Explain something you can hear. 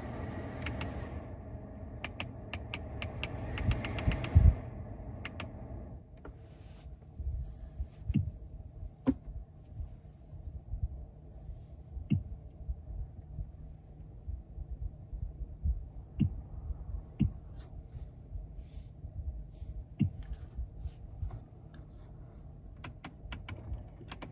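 Buttons click softly as a finger presses them.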